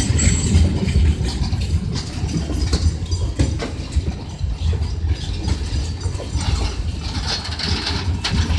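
Train wheels clatter and clank over rail joints.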